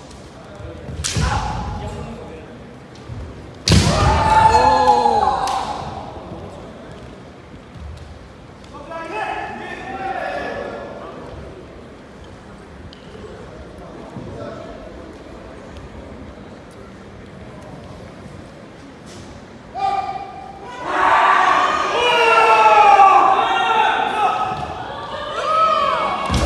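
Young men shout loud, drawn-out cries in an echoing hall.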